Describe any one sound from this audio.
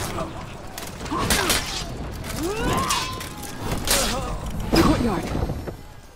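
Steel swords clash and strike in a fight.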